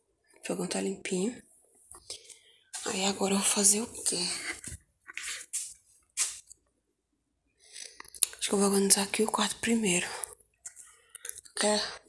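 A woman talks close by with animation, in short bursts with pauses.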